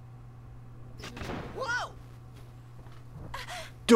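A wooden door bursts open with a thud.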